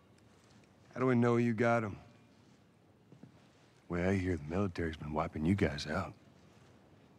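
A man speaks calmly in a low voice, close by.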